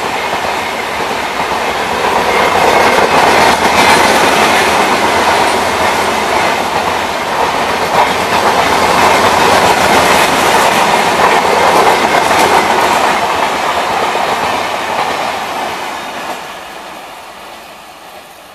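A passenger train rumbles and clatters past on the rails, then fades away.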